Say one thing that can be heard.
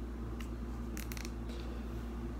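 A pen clicks softly in a man's hands.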